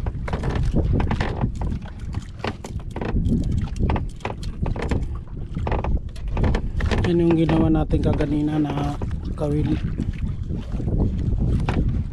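Hands handle a plastic container with soft knocks and rustles.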